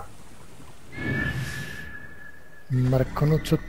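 A large bird of prey screeches.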